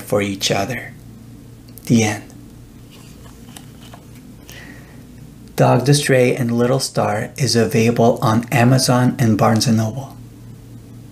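A man reads aloud calmly and warmly, close to a microphone.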